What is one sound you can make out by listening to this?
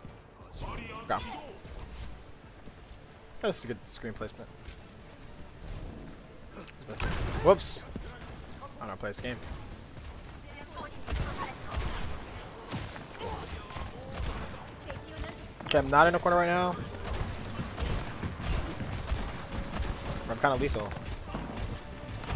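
Gunfire cracks in quick bursts.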